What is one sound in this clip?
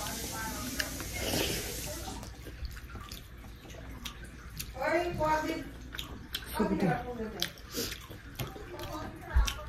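A young woman chews food loudly and smacks her lips.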